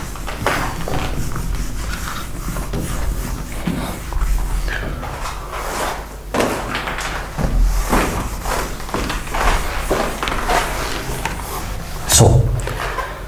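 A duster rubs and squeaks against a whiteboard.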